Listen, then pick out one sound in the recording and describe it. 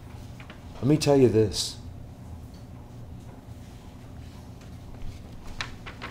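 Paper rustles as a man handles a sheet.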